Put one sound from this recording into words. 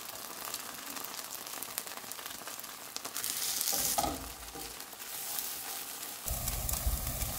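Pancakes sizzle as they fry in a pan.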